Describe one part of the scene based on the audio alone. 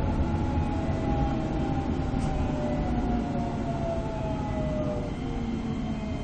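Train motors whine with a slowly falling pitch as the train slows.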